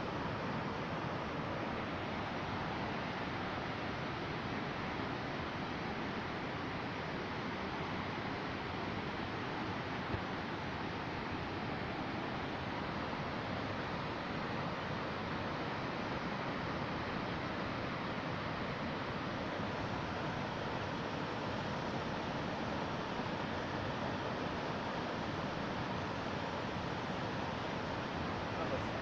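A large waterfall roars steadily.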